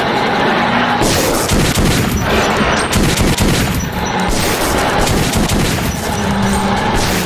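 A rifle fires rapid shots nearby.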